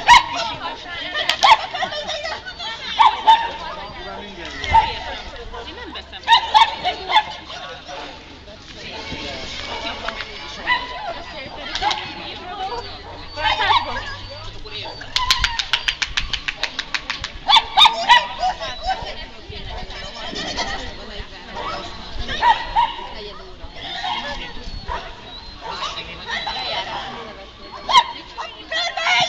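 A young woman calls out commands to a dog outdoors.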